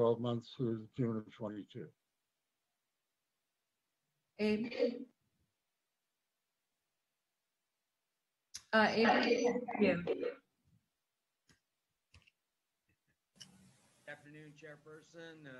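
Men speak calmly in turn over an online call.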